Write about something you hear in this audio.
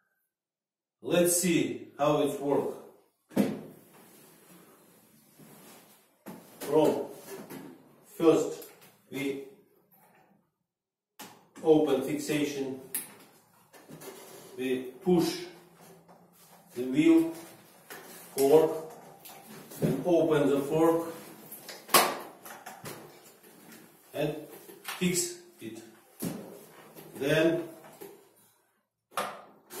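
A middle-aged man speaks calmly and clearly close by.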